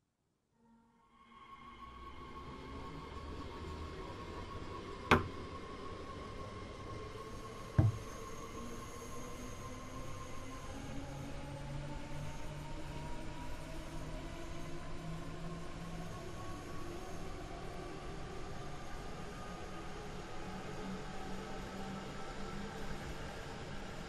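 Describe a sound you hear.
A train's electric motor whines, rising slowly in pitch as it speeds up.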